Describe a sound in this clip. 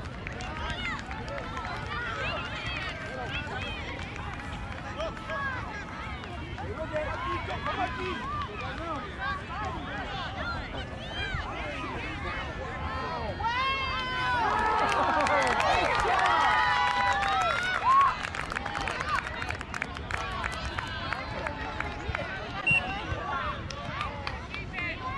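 A crowd of adults and children chatters and calls out outdoors.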